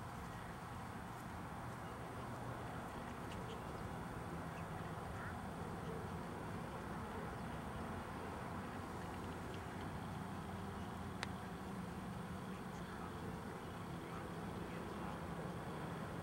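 A small dog bumps and pushes a hollow ball across grass.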